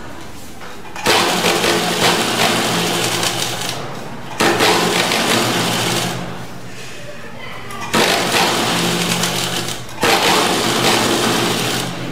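An electric sewing machine stitches fabric in bursts.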